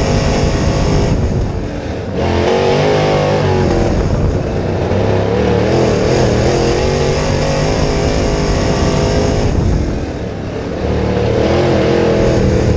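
A race car engine roars loudly up close, revving up and easing off again and again.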